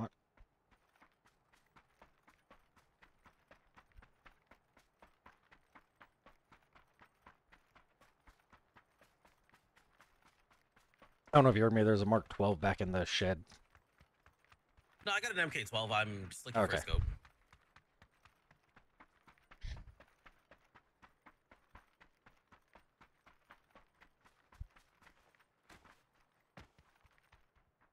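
Footsteps thud quickly and steadily.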